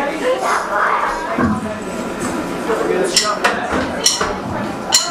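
A rock band plays loudly on stage.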